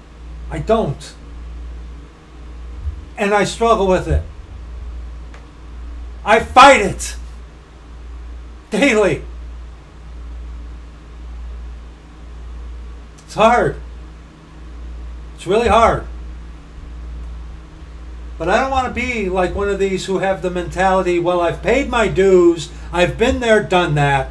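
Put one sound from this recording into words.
A middle-aged man speaks with animation close to a microphone, in short bursts and then steadily.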